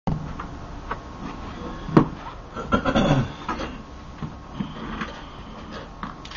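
An acoustic guitar is knocked and bumped close by, its strings jangling loosely.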